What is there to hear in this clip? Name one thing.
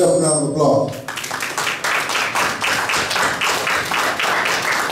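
People applaud steadily.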